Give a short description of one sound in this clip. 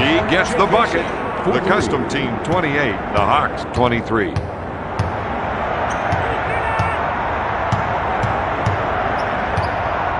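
A crowd murmurs and cheers steadily in a large echoing arena.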